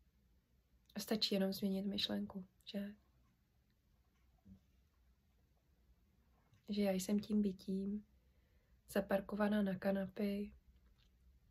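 A young woman speaks calmly, close to the microphone, in short phrases with pauses.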